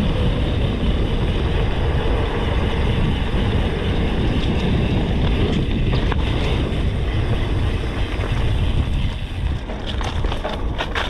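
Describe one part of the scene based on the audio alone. Wind rushes and buffets loudly.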